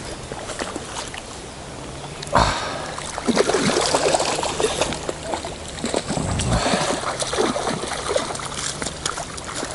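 A river flows steadily over stones.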